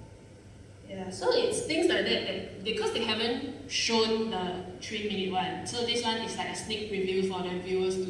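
A young woman speaks calmly through a microphone in a large echoing hall.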